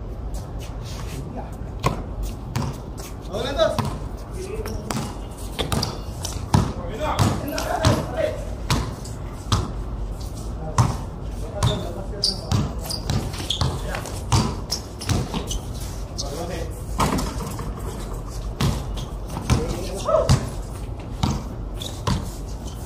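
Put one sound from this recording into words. A basketball bounces on concrete outdoors.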